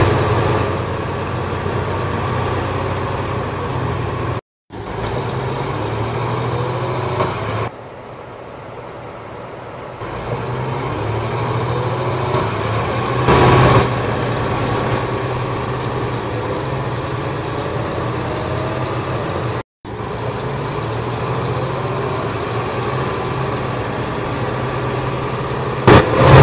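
A bus engine hums and revs up and down as the bus drives.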